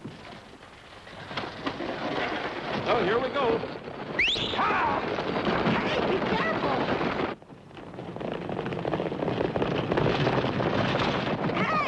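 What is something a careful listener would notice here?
A stagecoach rattles and creaks as it rolls.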